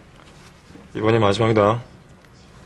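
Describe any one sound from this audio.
A young man speaks briefly and calmly.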